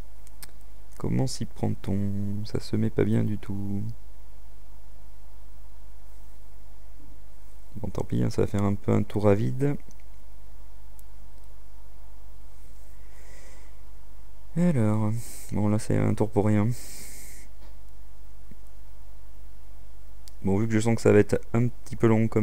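A young man talks calmly into a close microphone, in short bursts.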